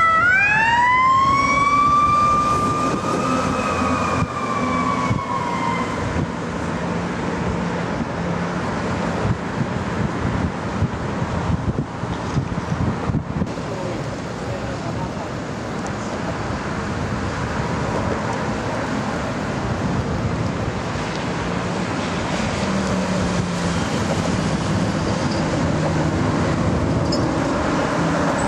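Fire truck engines rumble as they drive past.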